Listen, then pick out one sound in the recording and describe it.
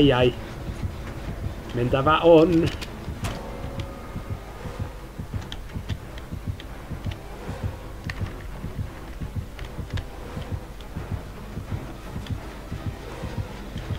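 Fast footsteps run on pavement.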